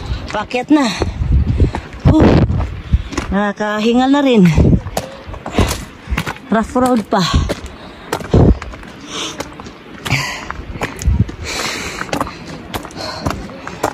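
Footsteps crunch on a loose gravel path.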